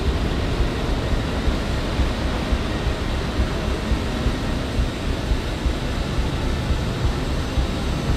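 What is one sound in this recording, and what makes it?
Jet engines roar steadily as a plane flies.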